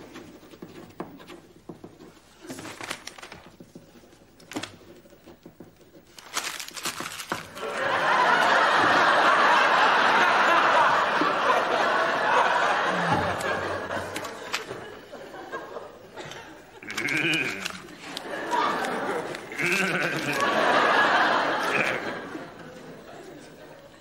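Pens scratch on paper.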